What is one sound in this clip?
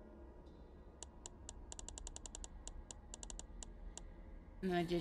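Quick soft ticks tap out in a rapid run, then slow and stop.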